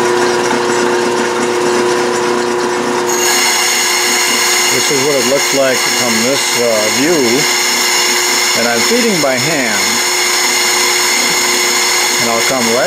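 A cutting tool scrapes against spinning metal.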